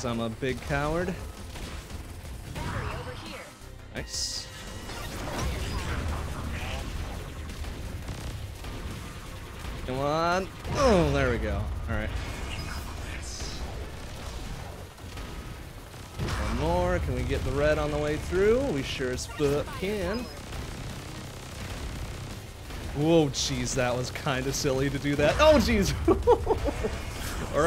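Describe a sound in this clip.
Video game explosions and laser shots crackle and zap.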